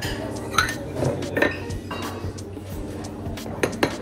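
Glasses are set down on a counter with a knock.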